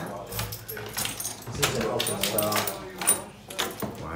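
A door latch clicks open.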